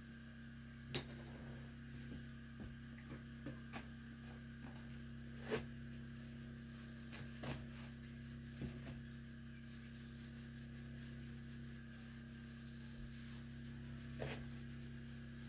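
A plastic bottle knocks and crinkles in someone's hands.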